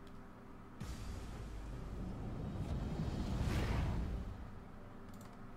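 A magical whoosh swells and then fades away.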